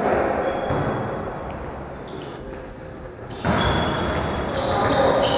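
Players call out to each other in a large echoing hall.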